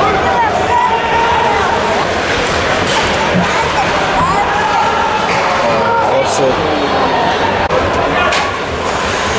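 Players shout to each other across an echoing rink.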